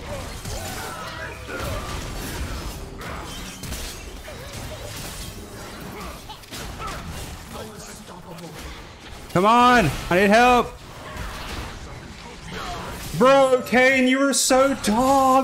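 Fantasy battle sound effects whoosh and crackle.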